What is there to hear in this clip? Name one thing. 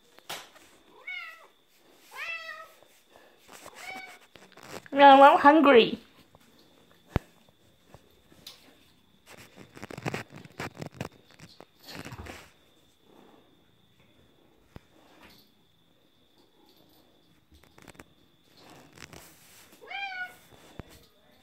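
A cat meows repeatedly, close by, one meow loud and drawn out.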